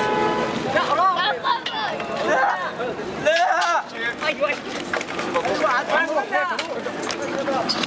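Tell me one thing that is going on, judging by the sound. A young man groans and cries out in pain.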